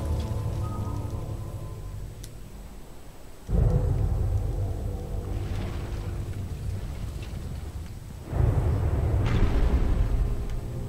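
Deep underwater rumbling surges and swirls.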